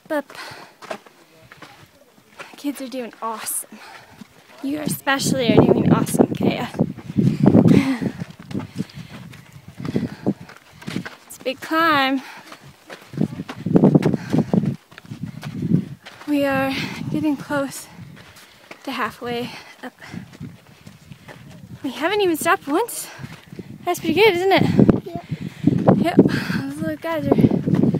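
Footsteps crunch on a rocky dirt trail.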